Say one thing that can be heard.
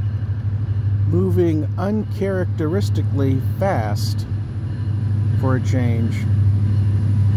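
A train horn blows.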